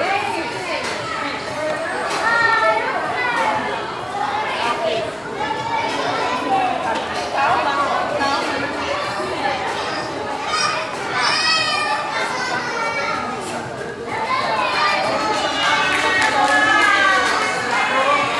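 Children shout and chatter in the background.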